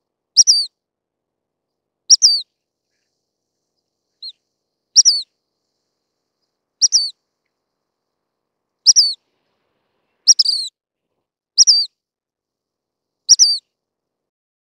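A small bird sings short, high chirping phrases at regular intervals, close by.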